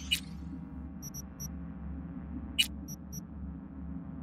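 Short electronic menu beeps chime a few times.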